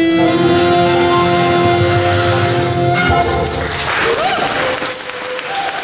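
A small folk band plays a lively tune in an echoing hall.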